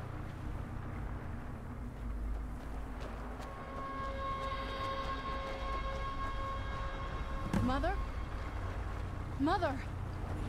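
Armored footsteps crunch on stone.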